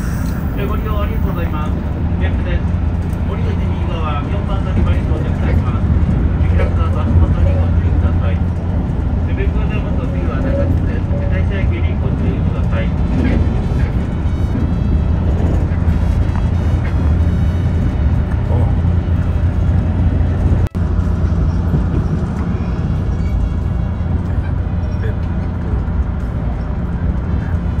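A train runs on rails, heard from inside a carriage.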